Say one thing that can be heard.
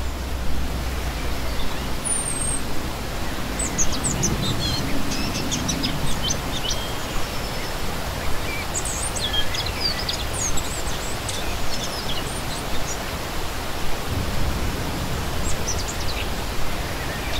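A shallow stream splashes and gurgles over rocks.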